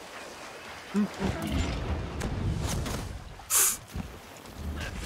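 Heavy blows thud and clang against a large creature.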